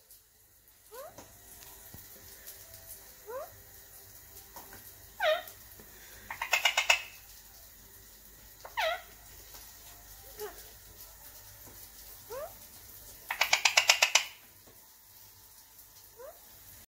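A parrot chirps and squawks in short calls.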